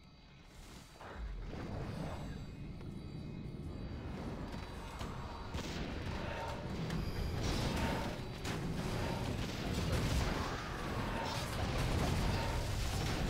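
Spells and weapons clash in a busy game battle.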